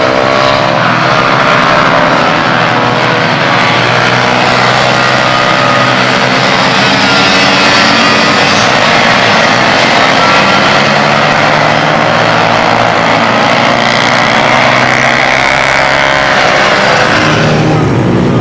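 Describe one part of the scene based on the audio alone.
Many motorcycle engines roar and rev loudly.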